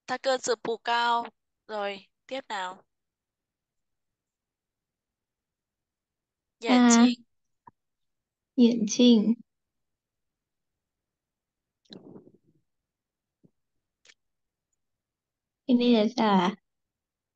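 A woman speaks slowly and clearly over an online call, in short phrases with pauses.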